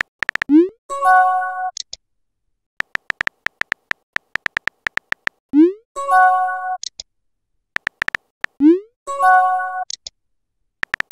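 A short rising chime sounds.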